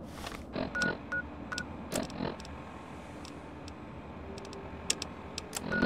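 Short electronic clicks and beeps sound as a game menu is browsed.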